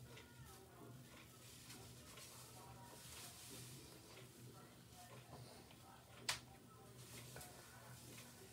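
Silky fabric rustles softly as it is pulled and tied.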